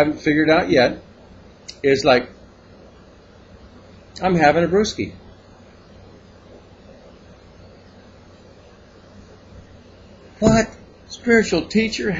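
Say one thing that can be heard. An older man speaks calmly and close by, in short bursts.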